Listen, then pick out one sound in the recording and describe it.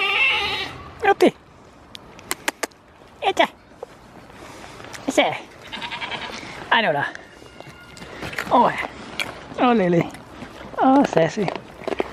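Goats bleat loudly close by, again and again.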